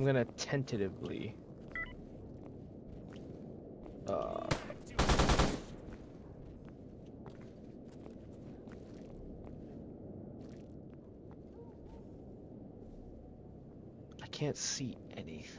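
Footsteps crunch slowly over frozen ground.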